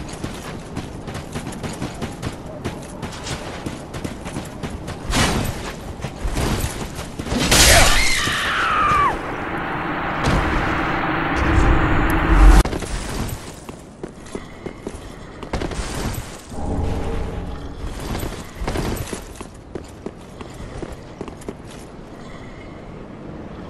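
Armoured footsteps crunch on gravel.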